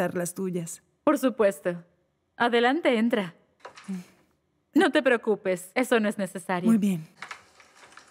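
Another woman answers cheerfully close by.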